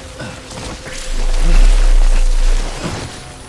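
A heavy, low rumbling thud booms.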